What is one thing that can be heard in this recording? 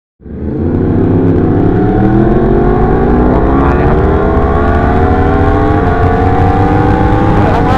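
A motorcycle engine roars loudly, rising steadily in pitch as it accelerates.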